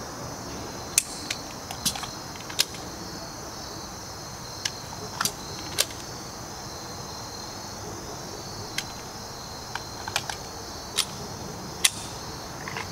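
A handgun fires single sharp shots outdoors.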